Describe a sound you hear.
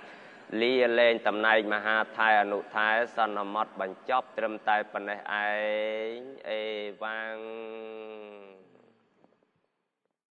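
A man chants in a steady, drawn-out voice through a microphone, then the voice fades away.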